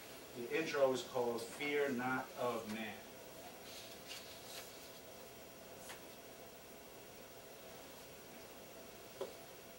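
Papers rustle and shuffle as a man handles them.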